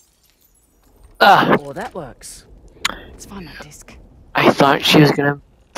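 A woman speaks calmly and briskly nearby.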